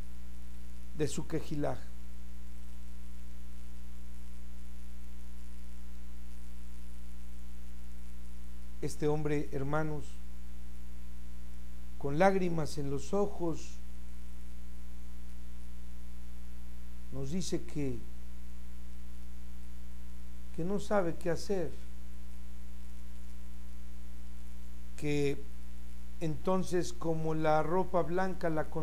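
An elderly man speaks calmly in short bursts, close to a microphone.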